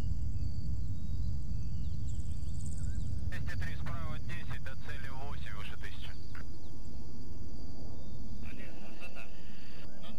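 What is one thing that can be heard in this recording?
A jet airplane roars in the distance.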